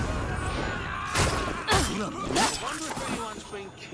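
Blows land in a scuffle.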